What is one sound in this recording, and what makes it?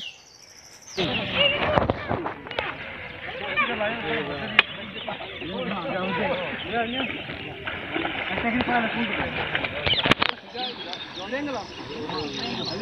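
Several men and boys talk and call out to each other outdoors.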